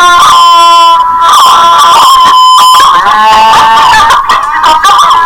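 A cartoon woman answers calmly through a loudspeaker.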